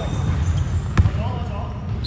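A basketball thumps on the floor.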